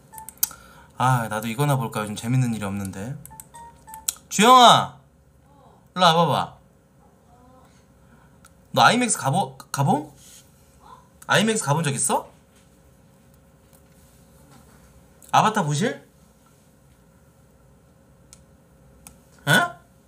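A man talks with animation, close to a microphone, in short bursts.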